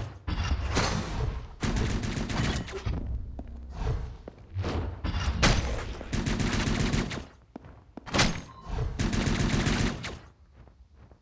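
Blades slash and strike in quick, rough bursts.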